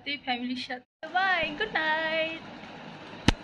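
A young woman sings a short playful phrase.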